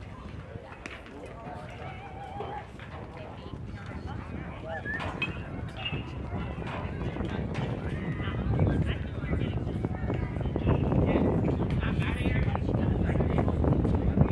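Players call out faintly in the distance.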